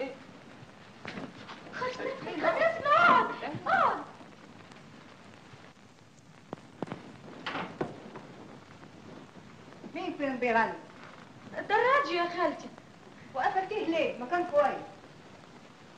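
A young woman speaks with agitation.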